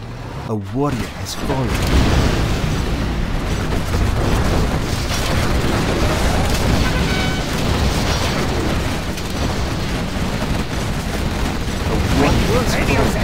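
Explosions boom and rumble in a loud battle.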